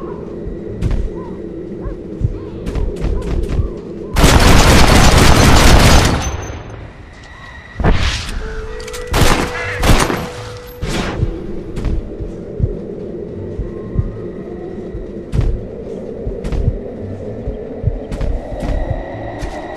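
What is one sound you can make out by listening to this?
Crows caw in a flock overhead.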